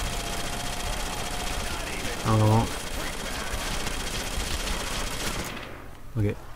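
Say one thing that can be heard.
A gun fires rapidly in bursts.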